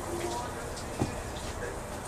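A fist thuds against a body.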